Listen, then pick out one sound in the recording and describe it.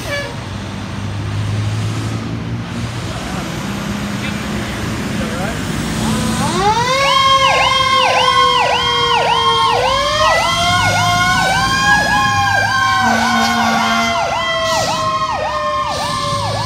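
A fire truck's diesel engine rumbles as it pulls out.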